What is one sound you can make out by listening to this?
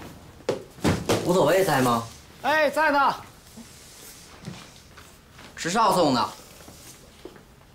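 A young man speaks in a calm voice.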